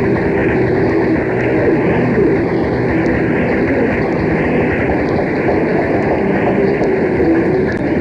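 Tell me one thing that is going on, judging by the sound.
A rock band plays electric guitars loudly.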